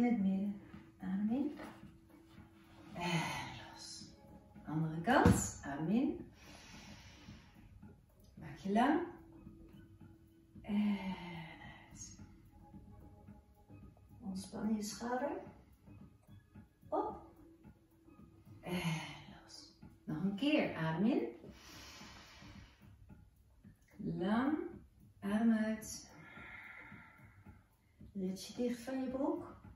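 A middle-aged woman speaks calmly and slowly nearby, with pauses between phrases.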